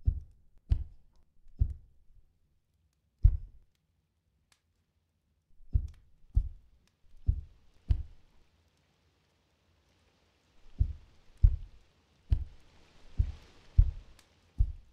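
Heavy footsteps thud slowly on a wooden floor.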